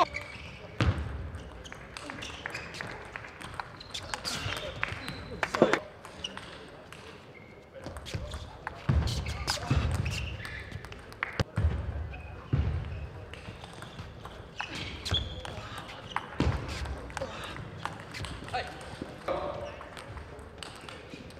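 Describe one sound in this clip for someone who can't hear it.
A table tennis ball clicks back and forth across a table and paddles.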